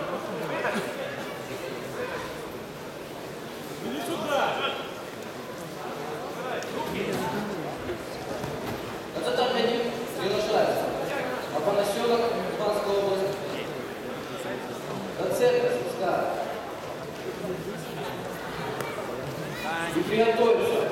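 Spectators shout and cheer in a large echoing hall.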